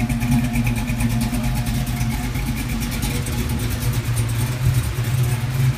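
A car engine idles close by with a deep, steady rumble.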